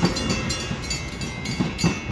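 A commuter train rolls away over the tracks.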